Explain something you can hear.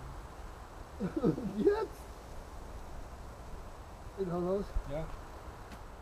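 A man grunts and calls out with effort nearby.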